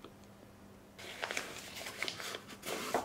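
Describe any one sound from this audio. A plastic bag crinkles and rustles as hands fold it.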